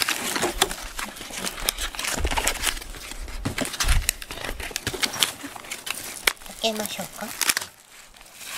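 A cardboard box scrapes and rustles in handling.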